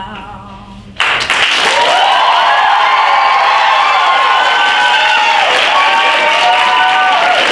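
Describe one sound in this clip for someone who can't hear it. A crowd claps and cheers loudly.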